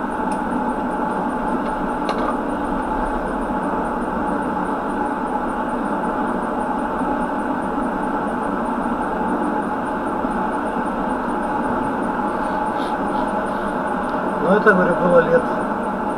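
A car drives along a road with a steady rumble of tyres and engine.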